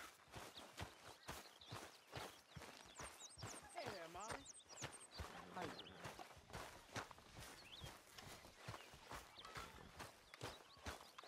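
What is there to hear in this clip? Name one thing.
Footsteps thud steadily on grass and dirt.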